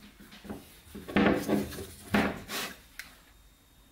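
A battery pack knocks and slides on a wooden table.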